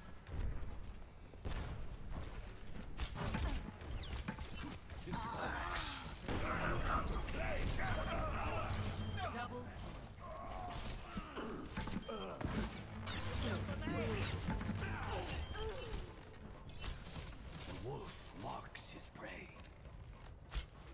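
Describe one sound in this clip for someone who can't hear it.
A bow twangs as arrows are loosed in quick shots.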